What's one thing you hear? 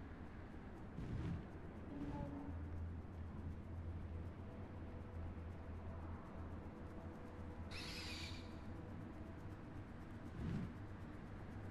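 A large bird's wings beat with soft whooshes.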